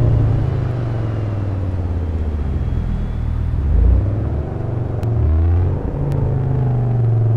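A car engine rumbles steadily, rising and falling as it drives slowly.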